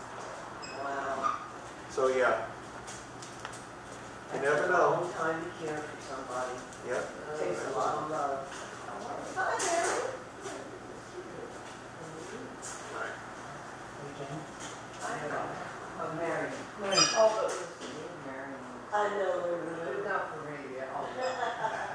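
A middle-aged man talks calmly, close by.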